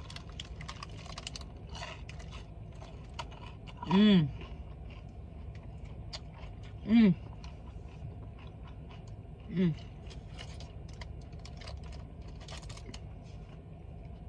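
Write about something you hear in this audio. A young woman chews crunchy food close to the microphone.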